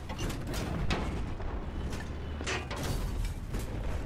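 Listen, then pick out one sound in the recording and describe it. A vehicle explodes with a loud blast and crackling debris.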